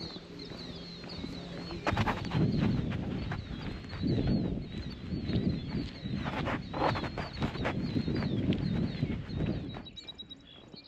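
Wind gusts and rumbles across an open field.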